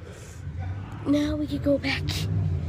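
A boy talks close to the microphone.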